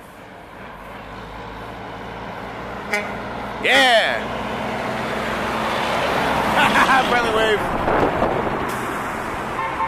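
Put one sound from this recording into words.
A large truck roars past close by, growing loud and then fading.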